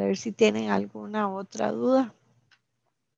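A woman speaks calmly through an online call, then falls silent.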